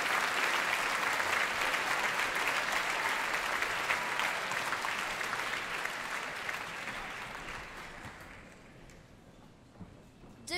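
An audience applauds and cheers in a large hall, then fades away.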